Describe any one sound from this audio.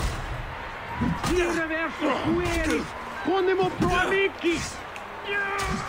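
Men grunt and shout with effort as they fight.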